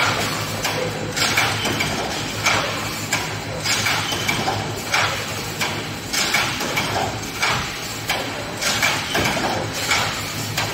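A mesh weaving machine clanks and thumps in a steady rhythm.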